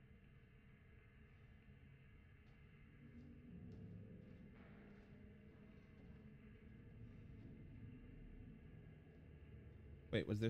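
A low, dull hum drones steadily.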